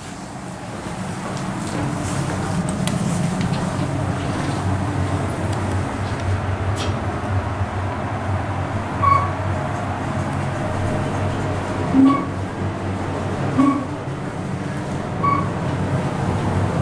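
An elevator car hums steadily as it moves.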